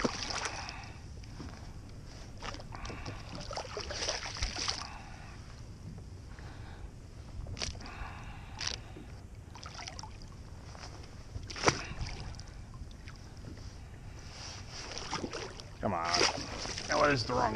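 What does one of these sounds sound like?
A fish splashes and thrashes at the water's surface close by.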